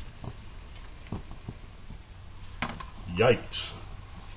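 A metal pot clinks as it is lifted off a small stove.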